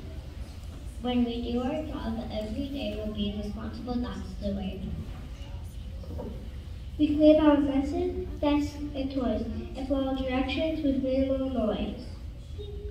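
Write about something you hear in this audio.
A choir of young children sings together in a large room.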